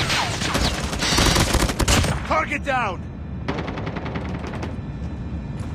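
An automatic rifle fires.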